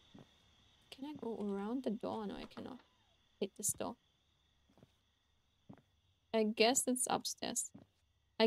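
A young woman speaks close to a microphone, with animation.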